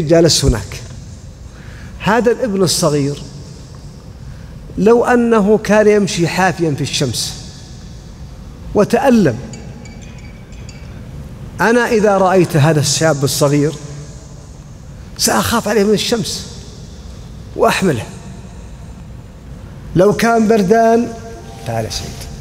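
A man speaks calmly into a microphone, in short phrases with pauses, in an echoing room.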